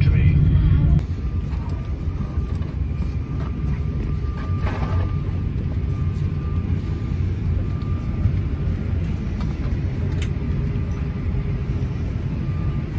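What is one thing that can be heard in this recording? A steady low hum of air fills an airliner cabin.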